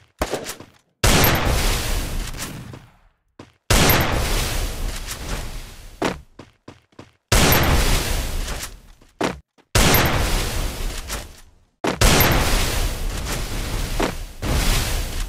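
Walls of ice burst up with loud crackling whooshes, over and over.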